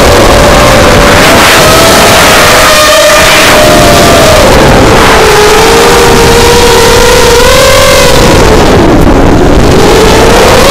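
Small drone motors whine loudly, rising and falling in pitch as they rev.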